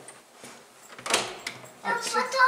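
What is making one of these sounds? A door latch clicks as the handle is pressed.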